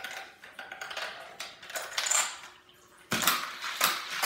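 Marbles rattle and clack down a plastic marble run.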